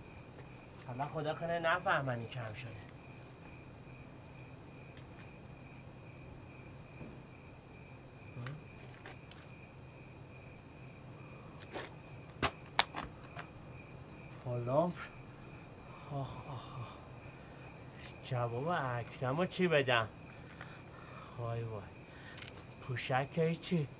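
A man talks to himself in a low, worried voice.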